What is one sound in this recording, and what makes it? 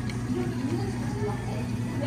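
Coffee pours over ice in a cup.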